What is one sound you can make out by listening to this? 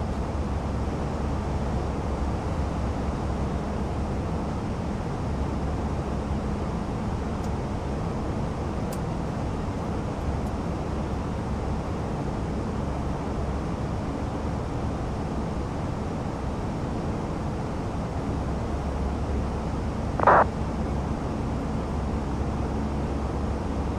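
Jet engines rumble steadily in a cockpit.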